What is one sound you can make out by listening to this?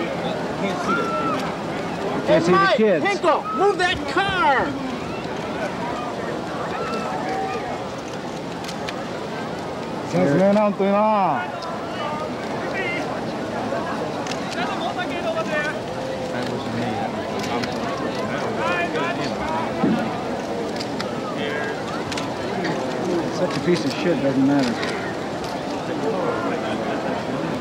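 A crowd of children chatters and calls out excitedly outdoors.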